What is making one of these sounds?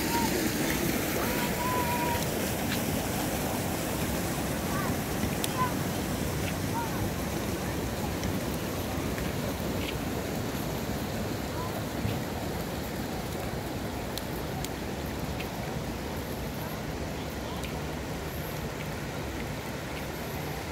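Water flows and splashes steadily in concrete channels.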